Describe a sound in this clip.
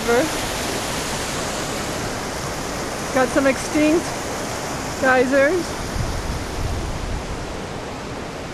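A stream rushes over rocks nearby.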